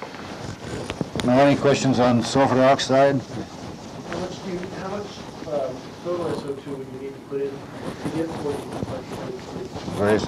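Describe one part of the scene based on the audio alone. An elderly man speaks calmly in a room with some echo.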